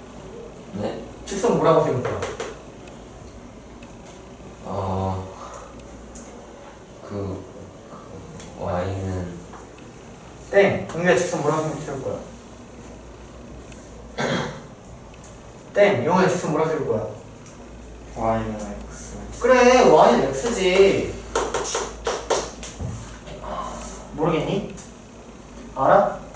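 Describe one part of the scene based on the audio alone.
A young man speaks calmly through a face mask, close by, in short phrases with pauses.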